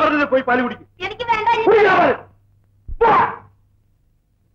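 A man speaks loudly and dramatically.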